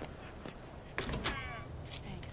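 A metal door creaks and bangs open.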